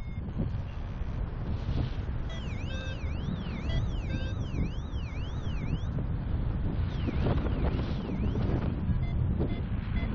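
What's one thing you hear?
Wind rushes and buffets loudly and steadily, outdoors high in the air.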